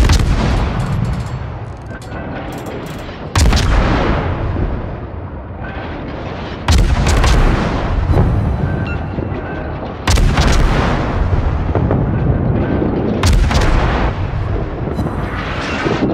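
Heavy guns fire in loud booms that rumble away.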